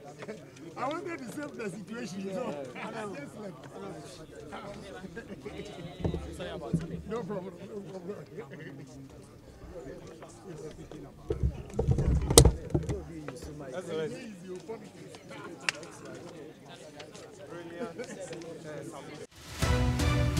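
A crowd of men and women chatter outdoors nearby.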